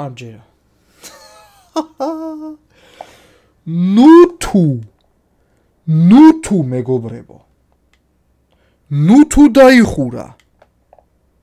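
A man speaks expressively into a close microphone, with sighs and drawn-out exclamations.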